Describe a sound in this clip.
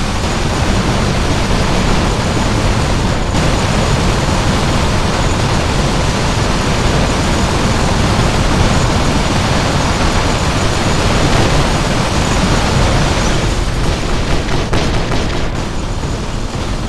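Heavy guns fire in rapid, continuous bursts.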